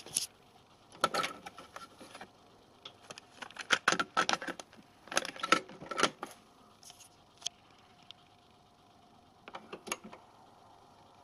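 Buttons on a cassette deck click as they are pressed.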